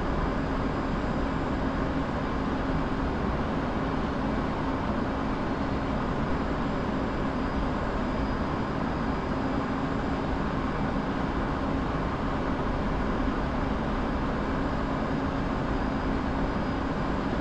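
A jet engine roars steadily with a low droning hum.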